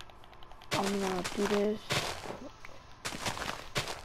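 Dirt crunches in short bursts as a shovel digs.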